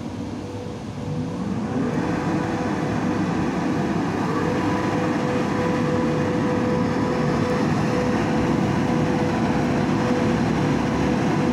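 A train horn sounds a steady tone.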